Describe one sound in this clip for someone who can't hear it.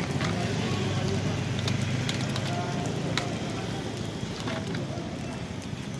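Plastic crinkles and taps as a container is filled by hand.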